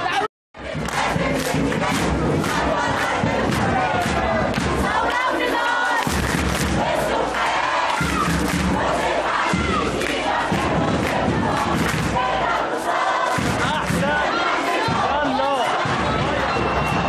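A crowd claps hands rhythmically.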